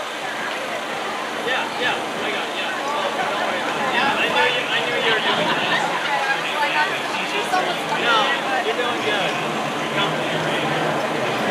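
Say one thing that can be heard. A vehicle drives slowly past.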